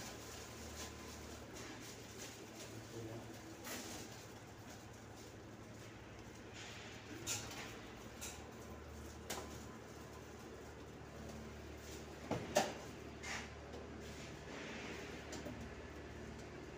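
A foil-wrapped duct crinkles and rustles.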